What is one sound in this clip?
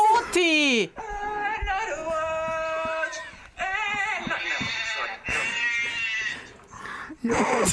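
A young man sings a held, wavering tune, heard as a recording.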